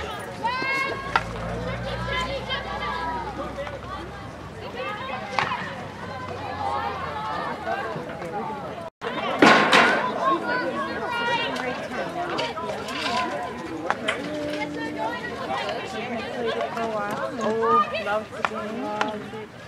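Hockey sticks clack against a ball.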